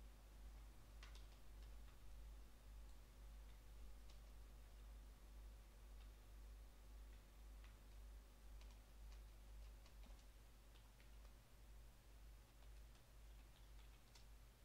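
Keys click on a keyboard.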